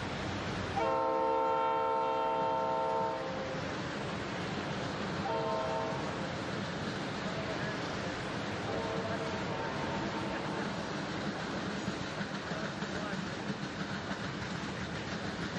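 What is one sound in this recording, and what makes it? A freight train rumbles and clatters steadily past.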